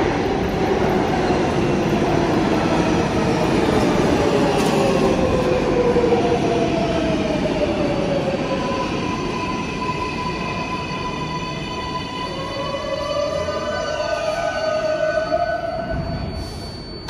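Train brakes squeal in long, falling whines.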